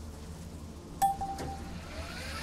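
A short game notification chime sounds.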